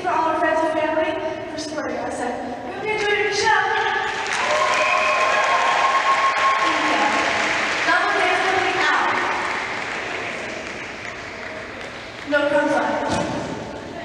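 A group of young women sing together in harmony in a large echoing hall.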